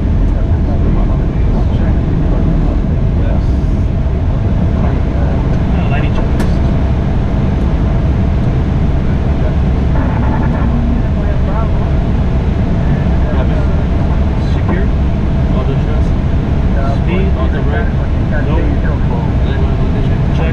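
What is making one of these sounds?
A jet airliner's engines and airflow roar steadily around the cockpit.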